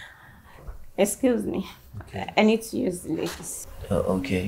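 A young woman speaks softly and politely, close by.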